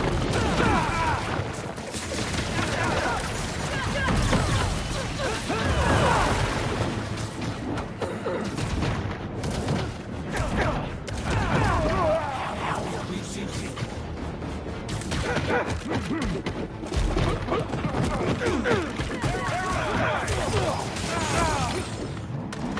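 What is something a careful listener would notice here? Punches and thuds land in a fast brawl.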